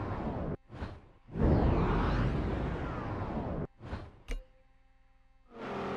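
A sports car engine roars at high revs in bursts.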